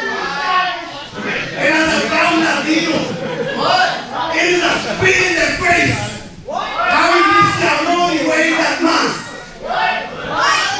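A man talks loudly and with animation into a microphone, heard through loudspeakers in a large echoing hall.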